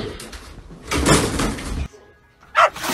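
A table clatters as it tips over.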